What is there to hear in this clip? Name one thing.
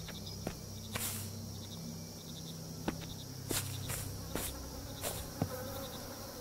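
Footsteps crunch slowly over dry ground.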